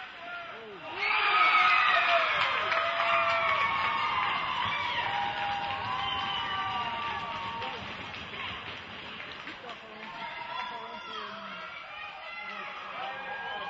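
A crowd cheers and shouts in a large echoing arena.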